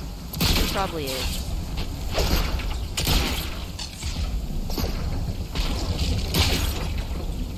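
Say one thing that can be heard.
Feet thud heavily on the ground after a jump.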